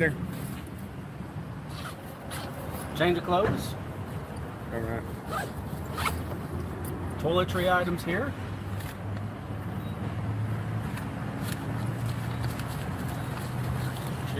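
A nylon backpack rustles as it is handled.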